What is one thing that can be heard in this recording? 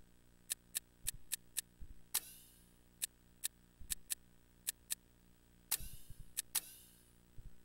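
Menu selection clicks tick rapidly, with chimes.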